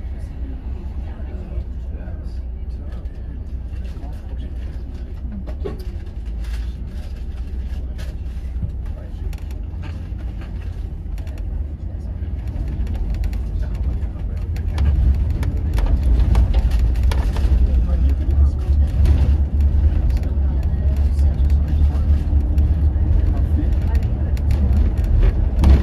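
A bus engine rumbles low and steady, growing louder as the bus picks up speed.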